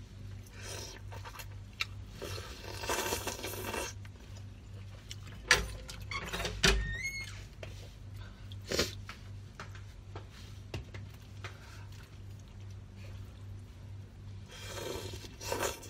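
A young woman slurps noodles loudly, close up.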